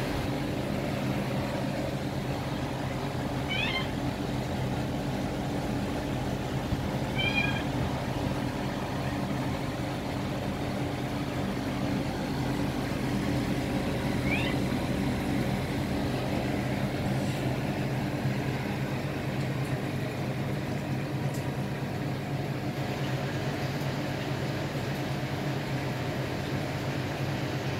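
Air bubbles stream and gurgle in water.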